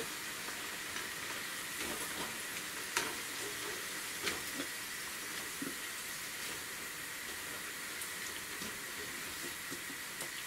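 A metal skimmer scrapes and clinks against a frying pan.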